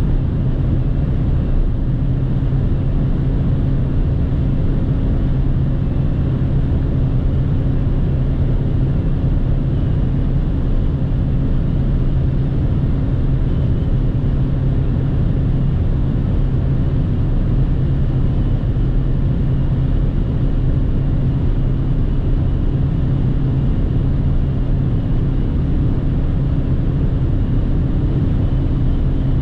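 A car's engine hums steadily at highway speed, heard from inside.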